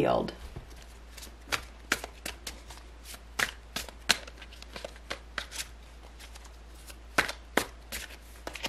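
Cards are shuffled with quick, light snaps.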